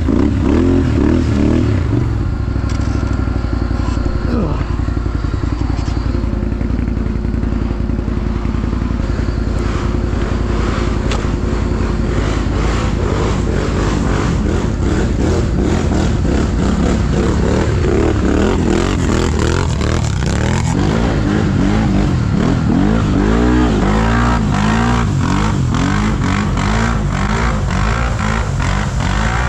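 A quad bike engine idles and revs up close.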